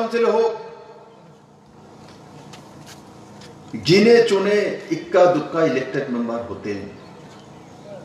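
A man gives a speech loudly into a microphone over a loudspeaker, outdoors.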